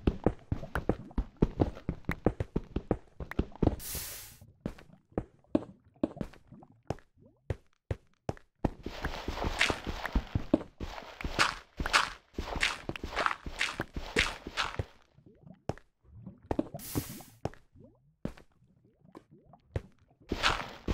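A pickaxe taps quickly on stone, knocking blocks loose.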